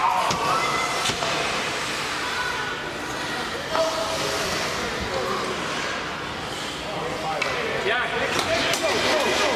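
Hockey skates scrape and carve on ice in an echoing indoor rink.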